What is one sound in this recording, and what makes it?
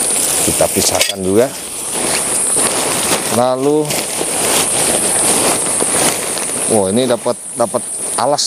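Thick plastic sheeting rustles and crinkles as it is handled.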